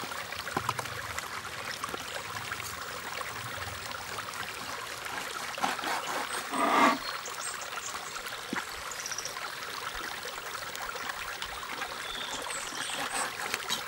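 A wooden spoon scrapes and stirs vegetables in a metal pot.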